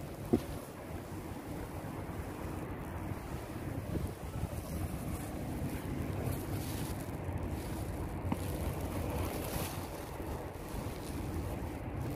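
Water laps against the side of a small inflatable boat.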